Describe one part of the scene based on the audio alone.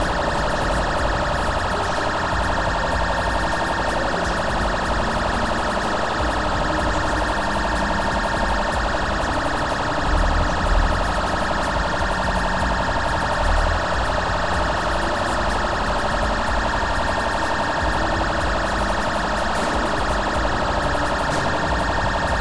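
A car engine roars as it drives fast.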